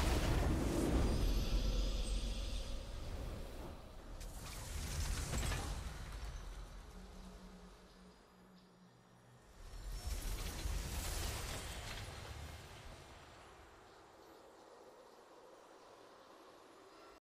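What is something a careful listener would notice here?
A triumphant fanfare swells in waves and then fades.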